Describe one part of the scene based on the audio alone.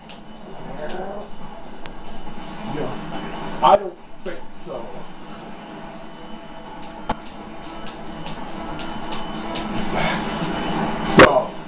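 Racing engines roar and whoosh steadily through a television speaker.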